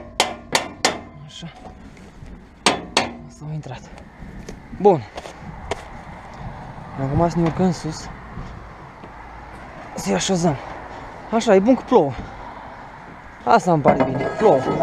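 Metal poles clank and rattle against each other.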